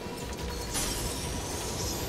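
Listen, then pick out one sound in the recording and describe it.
A laser beam hums as it fires.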